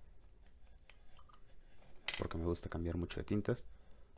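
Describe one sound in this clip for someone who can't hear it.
A small plastic cap clicks off a tube.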